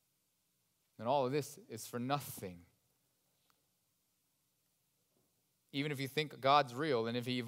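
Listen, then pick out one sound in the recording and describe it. A young man speaks calmly through a microphone, with long pauses.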